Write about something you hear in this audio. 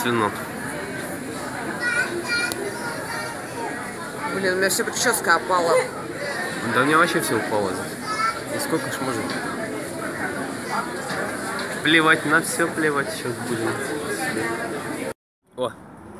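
A crowd of people chatter all around in a large echoing space.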